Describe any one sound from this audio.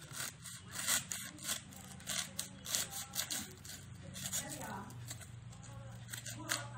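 A small blade scrapes and cuts through cardboard in short strokes.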